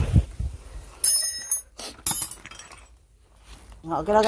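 Metal tools clink against each other.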